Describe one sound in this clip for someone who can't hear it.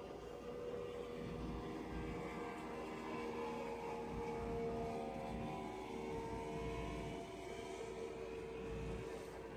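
A motorboat engine drones loudly as the boat speeds past.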